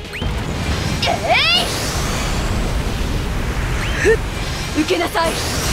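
Magic spells whoosh and chime in quick bursts.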